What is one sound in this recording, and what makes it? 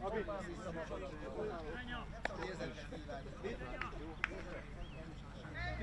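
Several men talk and call out close by, outdoors.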